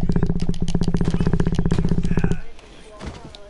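Fists thud against a body.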